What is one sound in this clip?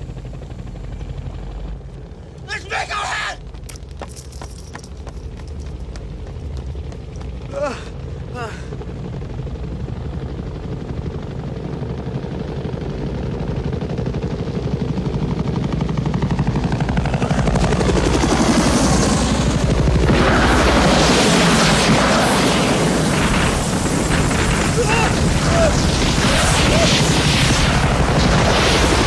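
Helicopter rotors thump steadily overhead, growing louder.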